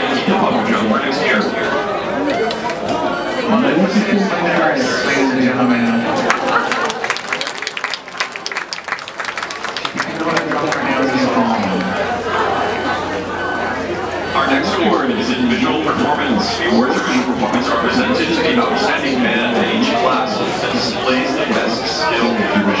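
A crowd of people chatters nearby, outdoors.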